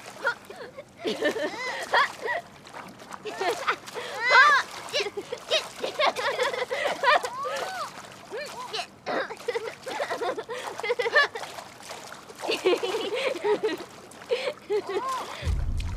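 A young girl laughs gleefully close by.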